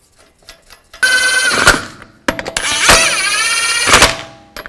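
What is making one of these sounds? An impact wrench whirs and rattles loudly in two bursts.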